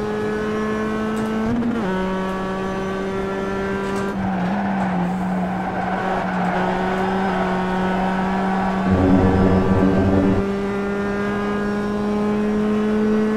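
A racing car engine drones through loudspeakers, its pitch dropping at each gear change.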